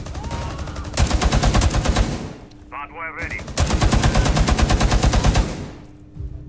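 A machine gun fires long rapid bursts close by.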